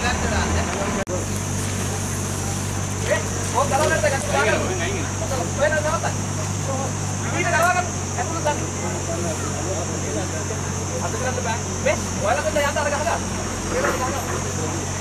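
A truck engine idles with a steady low hum.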